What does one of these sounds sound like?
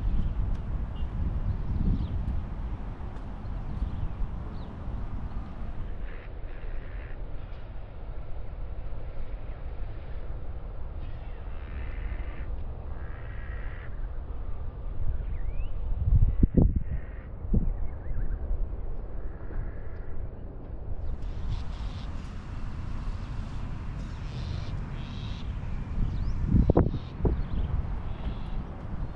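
Wind blows steadily across open ground outdoors.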